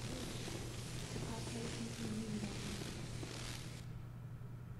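Electricity crackles and hisses sharply.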